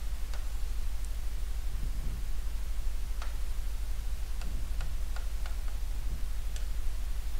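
A pen taps and clicks against a board.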